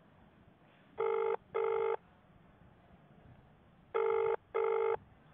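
A phone's ringing tone sounds in pairs of short, steady beeps over a call.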